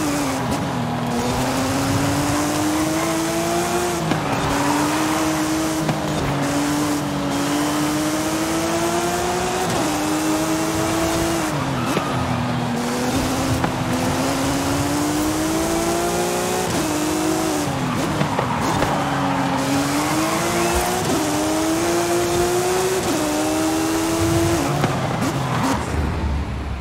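Tyres hiss steadily on the road.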